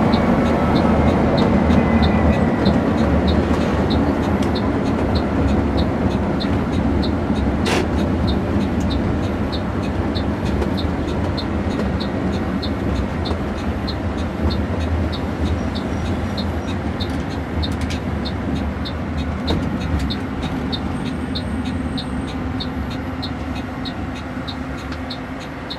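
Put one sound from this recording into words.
A bus engine rumbles steadily as it drives along a road.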